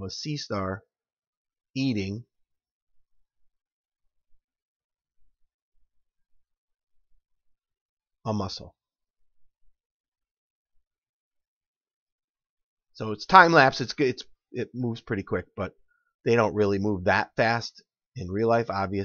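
A man speaks calmly into a headset microphone, close by.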